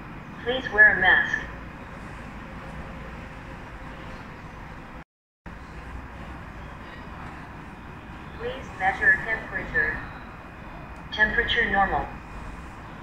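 A recorded woman's voice speaks briefly through a small loudspeaker, several times.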